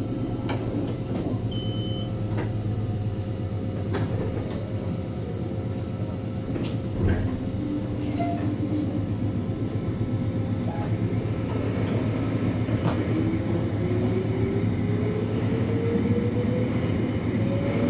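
A train rumbles steadily along the tracks from inside the cab.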